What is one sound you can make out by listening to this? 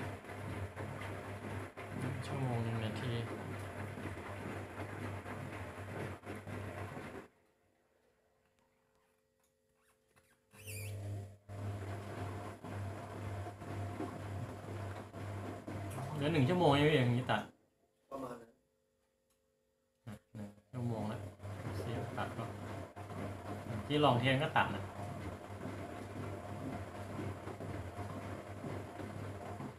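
A washing machine hums steadily.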